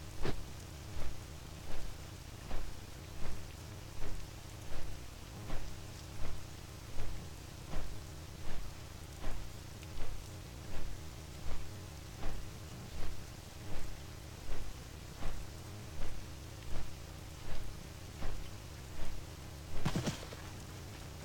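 Large wings flap in a steady, even rhythm.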